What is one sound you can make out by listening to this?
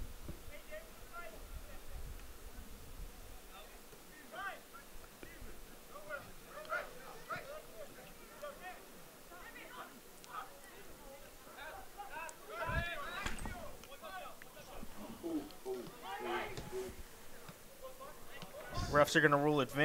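Young men shout to each other from a distance across an open field.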